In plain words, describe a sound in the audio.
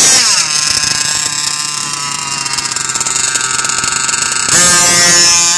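A small model engine screams loudly at high revs.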